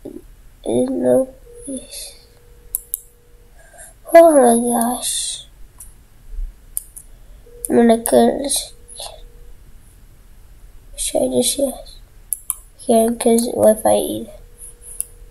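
A young boy talks in short bursts into a nearby microphone.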